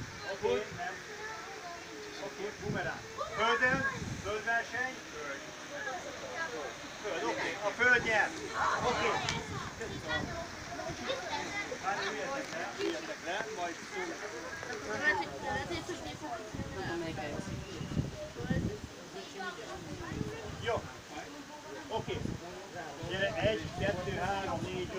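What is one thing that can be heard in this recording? A man speaks loudly to a group outdoors.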